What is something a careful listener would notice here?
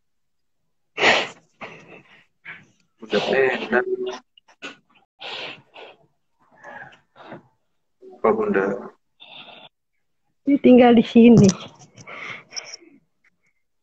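A woman cries and sobs over an online call.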